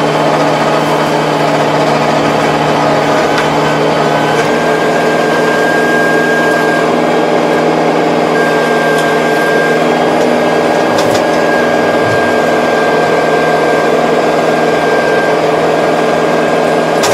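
A rotary tiller churns through soil with a rattling rumble.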